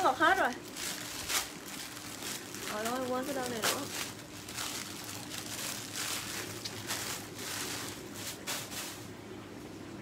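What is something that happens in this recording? A plastic package crinkles and rustles.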